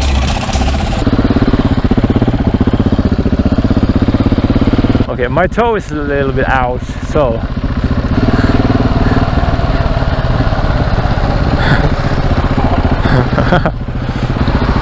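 A single-cylinder supermoto engine pulls along a road.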